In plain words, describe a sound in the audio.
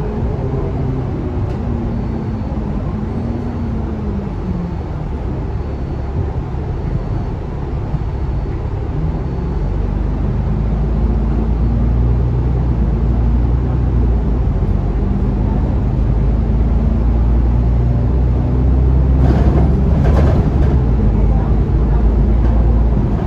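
A bus engine hums steadily from inside as the bus drives along.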